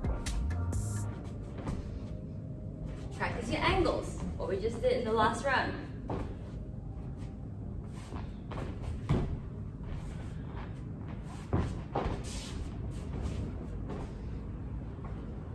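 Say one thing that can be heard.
Bare feet thud and shuffle on a padded mat.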